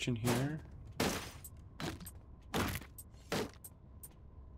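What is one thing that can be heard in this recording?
Sharp blows thud in quick succession during a fight.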